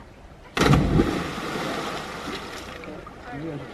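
A person plunges into water with a loud splash.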